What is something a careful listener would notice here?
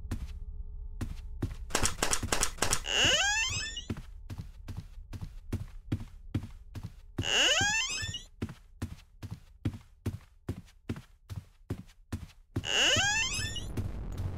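Footsteps tap at an even pace.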